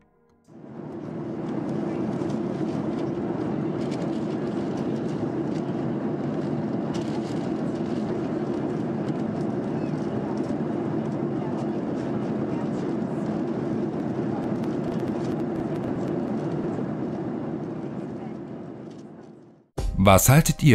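A jet engine roars steadily from inside an aircraft cabin.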